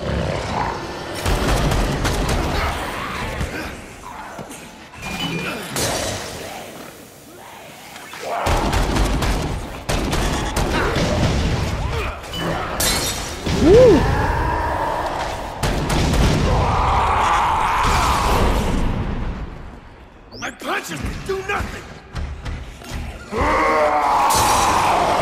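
Zombies groan and moan.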